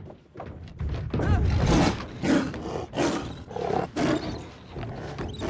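A tiger roars and snarls loudly.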